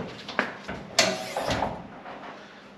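A car bonnet creaks as it is lifted.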